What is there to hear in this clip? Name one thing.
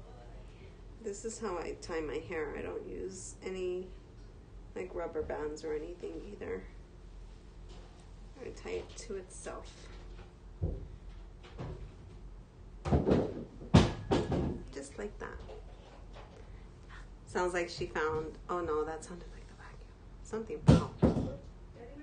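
A woman talks calmly and cheerfully close to a microphone.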